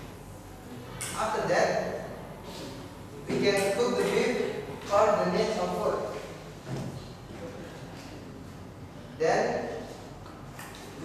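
A young man speaks in short bursts.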